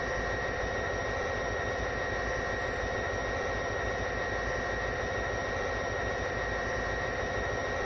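A diesel locomotive engine drones steadily.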